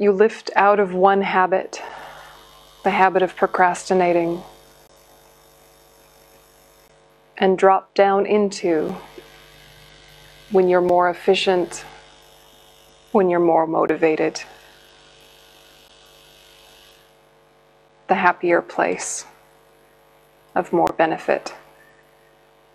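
A young woman speaks calmly and slowly into a close microphone, with long pauses.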